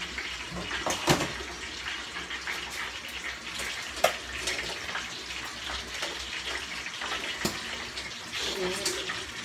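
A metal spoon clinks against a pot as food is stirred.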